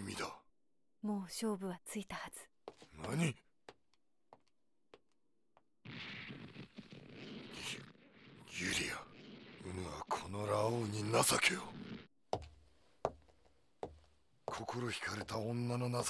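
A man speaks in a deep, strained voice, close by.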